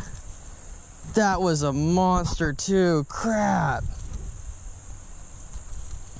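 A fishing reel clicks as line is wound in.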